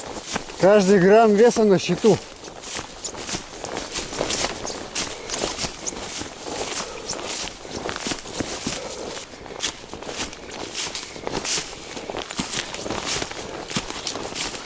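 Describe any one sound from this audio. Footsteps crunch and rustle through dry leaves and grass.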